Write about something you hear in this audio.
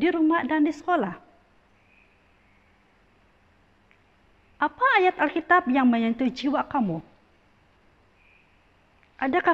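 A woman speaks calmly and clearly into a close microphone, with pauses.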